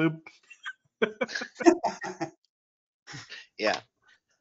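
Several men laugh over an online call.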